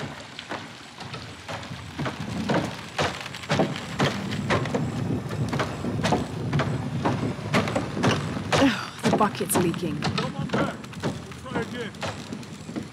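Footsteps thud steadily on stone and wooden planks.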